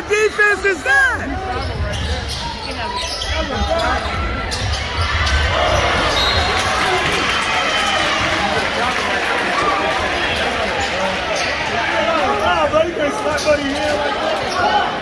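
A large crowd murmurs and cheers in an echoing gym.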